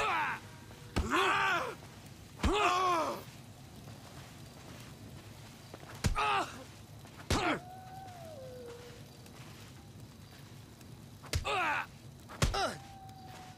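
Fists thud as two men trade punches.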